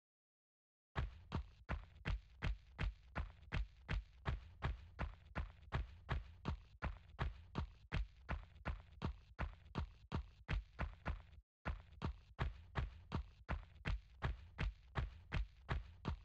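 Quick, even footsteps thud on soft sand.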